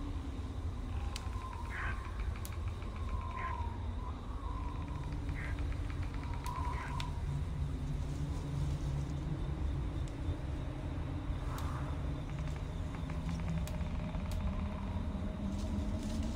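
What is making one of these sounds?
Soft menu clicks and chimes sound as options are selected.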